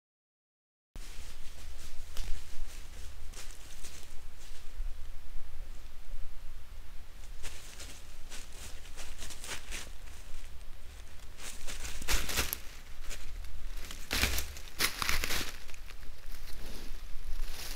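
A wild boar rustles through dry leaves close by.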